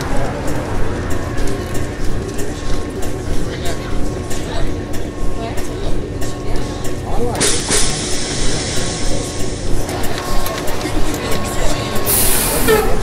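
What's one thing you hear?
A diesel city bus engine idles with a throbbing rumble.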